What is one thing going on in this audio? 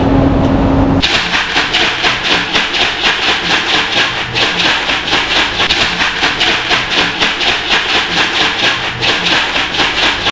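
Dry pet food rattles rhythmically inside a plastic jar being shaken.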